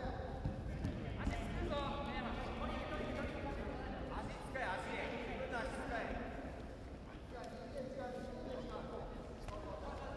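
Fighters' bodies thump and shuffle on a ring mat.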